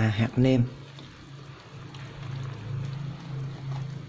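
Liquid pours from a bottle into a pot of soup.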